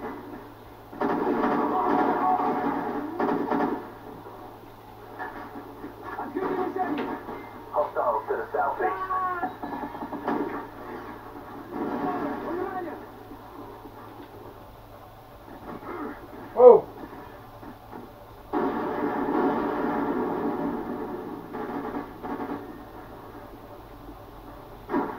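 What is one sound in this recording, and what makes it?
Gunfire and explosions from a video game play through a television loudspeaker.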